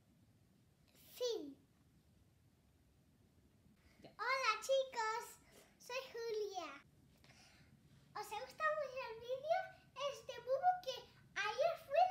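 A young girl speaks and exclaims excitedly close by.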